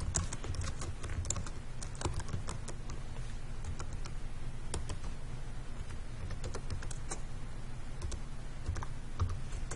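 Keys on a keyboard click as someone types.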